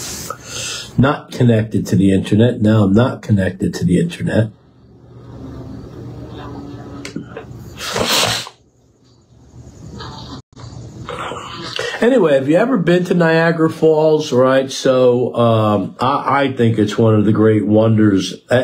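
An elderly man speaks calmly and close by, in pauses.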